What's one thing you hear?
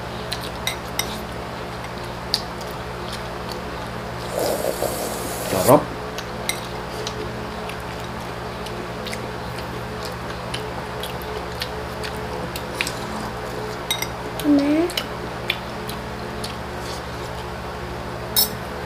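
Hands pick at food with soft clicks and crackles.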